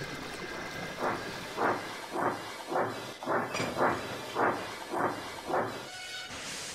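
A steam engine chuffs in steady puffs.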